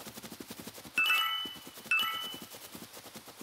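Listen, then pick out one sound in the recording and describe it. Bright chimes ring out as coins are collected.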